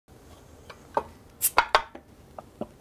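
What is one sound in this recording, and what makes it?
A bottle opener clicks against a bottle cap.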